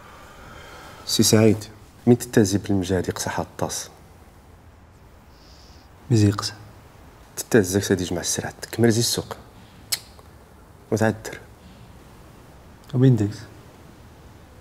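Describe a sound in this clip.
A man speaks calmly and low, close by.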